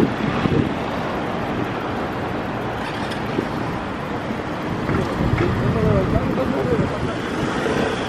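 A bicycle rolls past on pavement.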